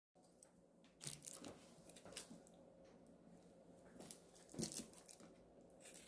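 A carton is set down on a counter with a light knock.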